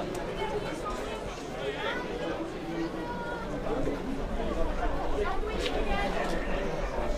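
A crowd of spectators murmurs and calls outdoors.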